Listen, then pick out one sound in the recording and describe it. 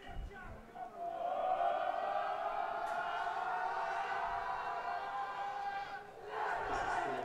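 A group of young men chant together in a huddle outdoors.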